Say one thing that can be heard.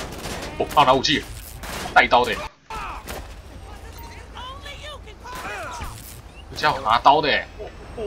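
Pistol shots ring out sharply.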